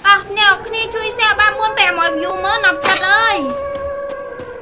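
A young woman speaks.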